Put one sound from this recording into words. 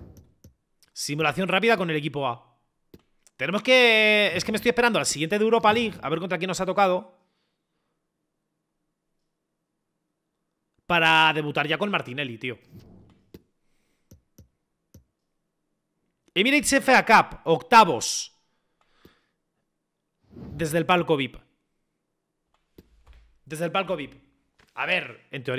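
A young man talks with animation into a close microphone, in short bursts with pauses.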